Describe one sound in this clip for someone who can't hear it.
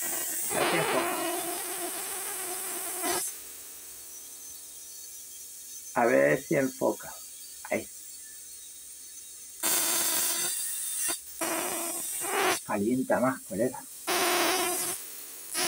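A plasma globe hums and crackles softly as a fingertip touches the glass.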